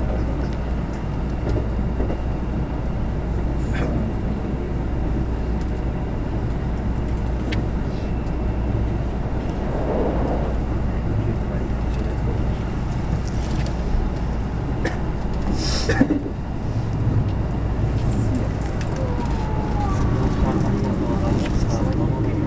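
Train wheels clatter over rail joints and points.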